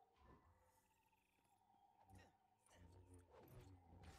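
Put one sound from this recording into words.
A lightsaber swishes through the air.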